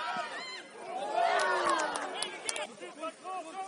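A crowd of spectators cheers and shouts loudly.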